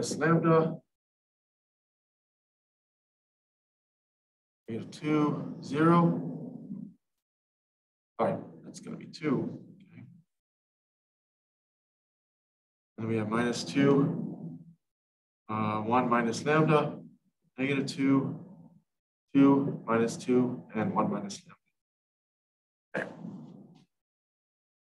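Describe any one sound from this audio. A man speaks calmly in short phrases, close to a microphone, with pauses between them.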